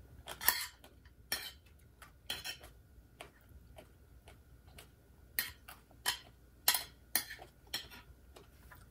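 A spoon clinks against a plate.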